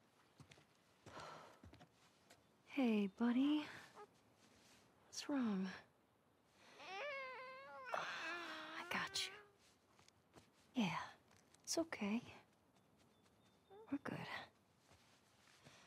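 A young woman speaks softly and warmly, close by.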